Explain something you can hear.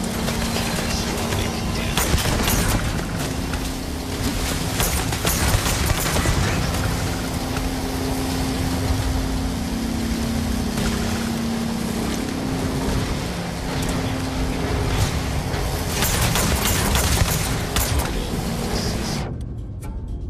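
Laser weapons fire in sharp, crackling bursts.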